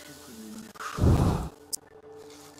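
A magical whoosh bursts out briefly.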